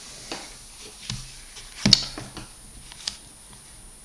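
Calculator keys click as they are pressed.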